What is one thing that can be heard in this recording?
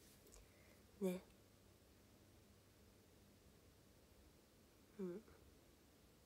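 A young woman hums briefly close by.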